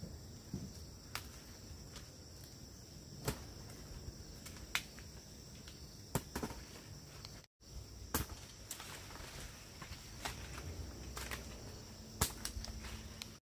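Leaves rustle as a branch is pulled and shaken.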